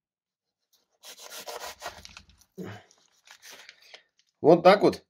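A knife saws through a loaf of bread.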